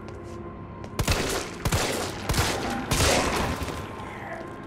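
Pistol shots ring out loudly several times, echoing in an enclosed space.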